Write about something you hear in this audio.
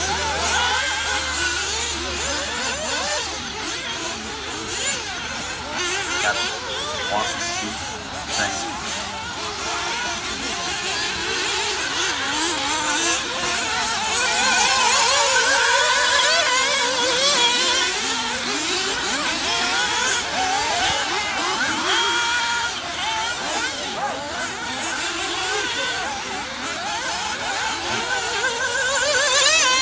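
Small electric racing cars whine and buzz as they speed around a dirt track.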